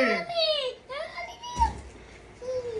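A young child squeals and babbles in a high voice nearby.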